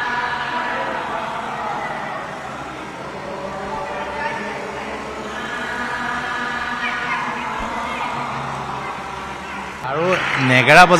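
A group of women chant together in a large echoing hall.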